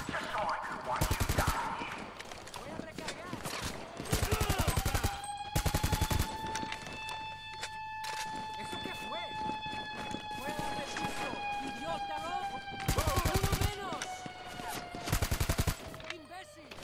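A rifle fires in rapid bursts of loud shots.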